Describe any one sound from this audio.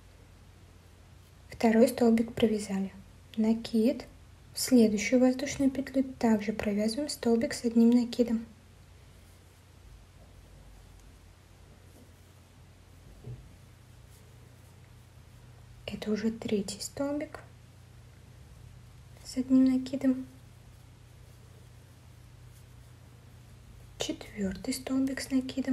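A crochet hook softly pulls yarn through loops.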